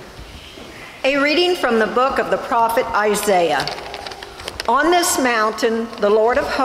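A middle-aged woman reads out calmly through a microphone in an echoing room.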